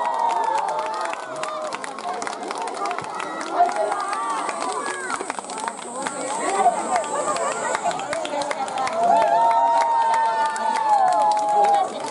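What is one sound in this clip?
A crowd of children and adults chatter and call out excitedly nearby.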